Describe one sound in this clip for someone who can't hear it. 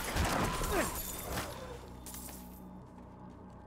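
Swords clash and spells burst loudly in a fight.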